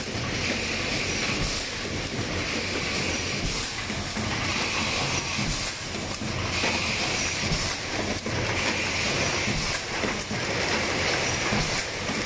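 A machine hums and clatters steadily.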